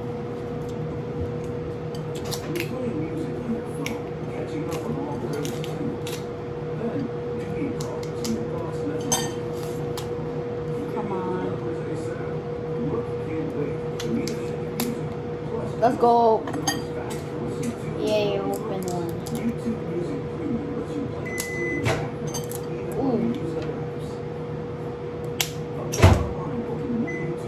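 Chopsticks click lightly against bowls close by.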